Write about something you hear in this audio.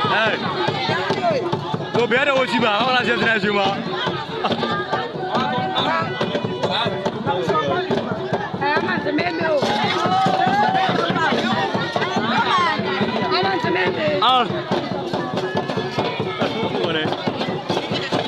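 A large outdoor crowd chatters, shouts and cheers close by.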